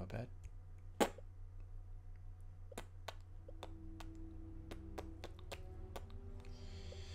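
Short menu clicks sound as pages turn.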